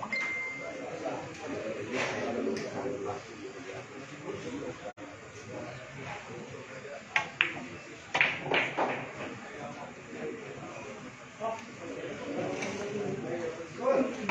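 Men chat quietly in the background.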